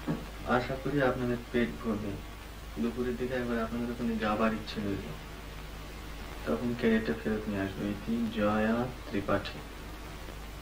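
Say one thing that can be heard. A man reads a letter aloud, close by.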